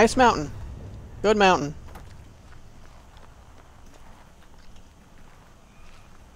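Footsteps crunch over dirt and gravel.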